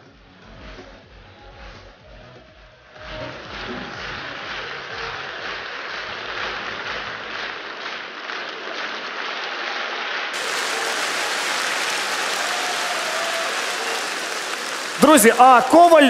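A large audience applauds in an echoing hall, swelling to loud clapping.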